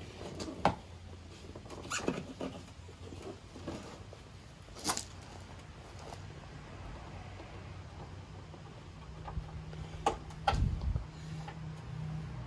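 Plastic parts click and rattle as they are pried loose.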